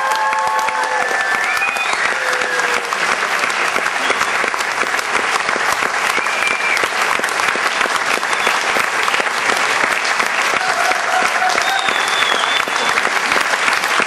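Audience members cheer and whistle.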